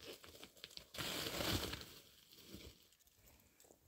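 A plastic sack crinkles.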